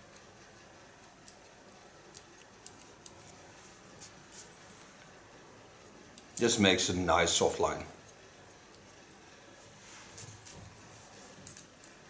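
Scissors snip through hair in quick, light clicks.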